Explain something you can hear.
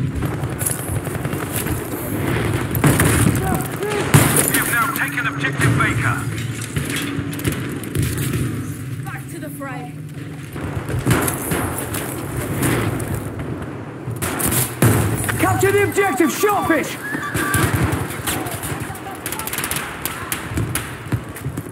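Rifle shots crack and boom, echoing off hard walls.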